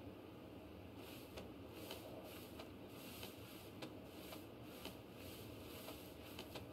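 Grass rustles as someone crawls through it.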